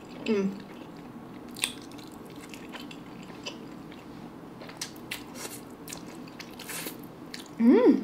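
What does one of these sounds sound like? A young woman slurps noodles loudly close to a microphone.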